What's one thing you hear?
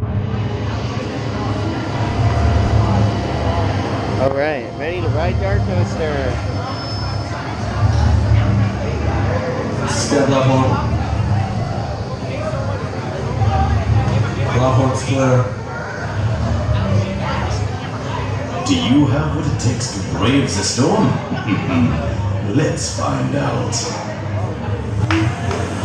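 A crowd of young people chatters and shouts nearby.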